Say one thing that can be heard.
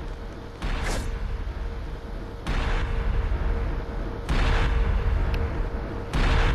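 Slow footsteps thud on a wooden floor in an echoing corridor.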